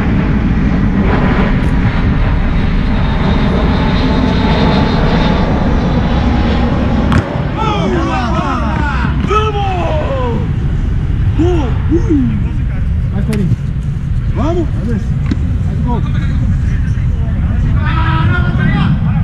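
Wind blows steadily across an open outdoor field.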